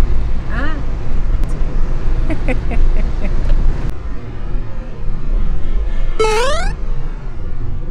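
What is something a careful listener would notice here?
A woman talks and laughs close by.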